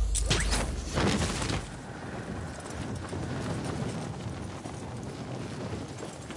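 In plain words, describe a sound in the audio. Wind roars steadily past at high speed, then eases.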